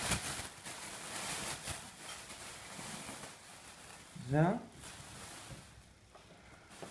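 Plastic packing wrap crinkles and rustles.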